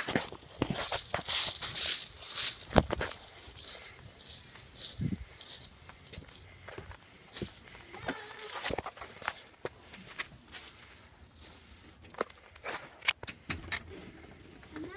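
Clothing rustles and knocks close against a microphone.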